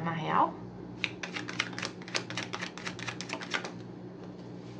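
Playing cards are shuffled with quick, rapid flutters.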